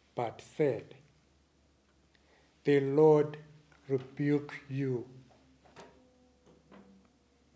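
An elderly man speaks slowly and calmly into a microphone in a reverberant room.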